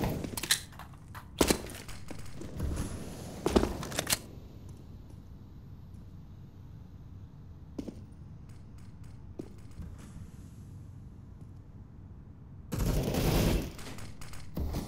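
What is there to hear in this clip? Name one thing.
Footsteps tread across hard floors.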